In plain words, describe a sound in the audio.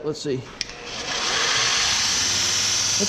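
A belt sander whirs steadily.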